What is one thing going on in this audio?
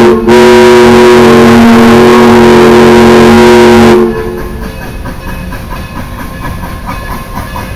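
A steam locomotive chugs as it approaches.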